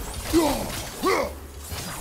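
An axe whooshes through the air in a heavy swing.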